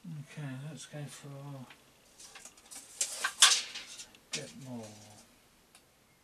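An older man talks calmly nearby.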